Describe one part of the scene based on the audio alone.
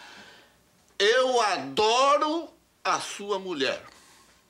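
An older man speaks angrily, close by.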